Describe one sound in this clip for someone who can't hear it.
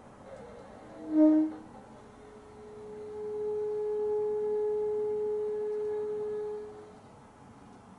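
A bassoon plays a short note, then a long steady held note in a reverberant room.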